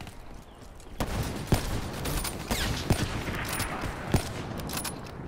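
Sharp rifle shots crack out one after another.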